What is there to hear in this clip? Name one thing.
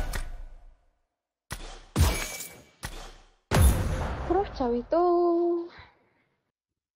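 Game menu sounds whoosh and chime in short bursts.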